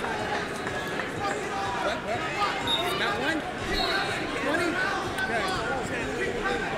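Many voices of a crowd chatter and call out in a large echoing hall.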